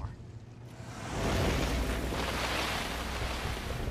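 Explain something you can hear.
A car drives away with a loud rush of noise.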